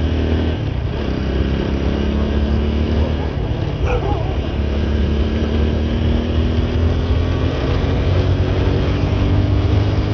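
A motorcycle engine rumbles steadily up close as the bike rides along.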